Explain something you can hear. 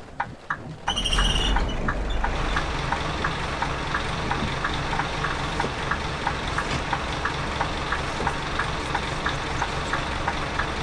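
Rain patters against the bus windows.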